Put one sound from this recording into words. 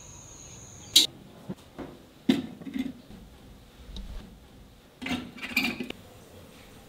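Clay pots knock and clatter on a hard surface.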